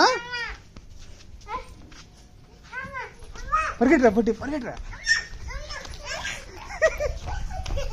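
Young girls call out and squeal playfully nearby.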